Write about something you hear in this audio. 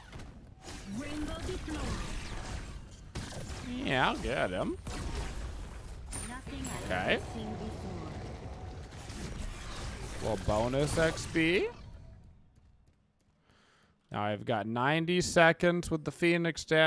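A man speaks with animation, close to a headset microphone.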